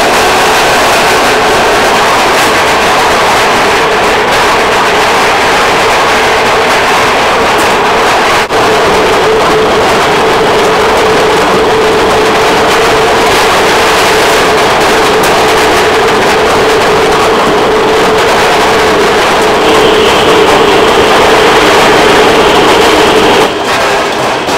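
A machine hums loudly and steadily.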